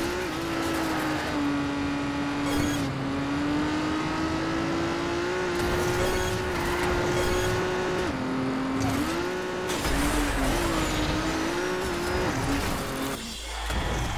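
An open-wheel racing car engine whines at high revs, shifting pitch.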